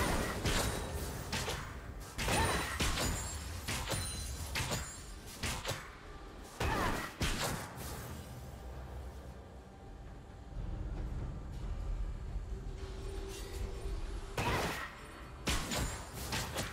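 Game spell effects whoosh and clash during a fight.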